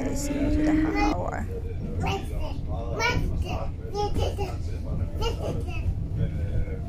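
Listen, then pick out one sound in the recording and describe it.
A small child babbles and squeals in high bursts nearby.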